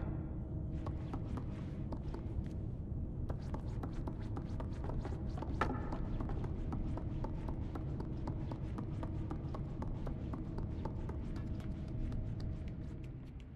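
Small footsteps patter quickly on creaky wooden floorboards.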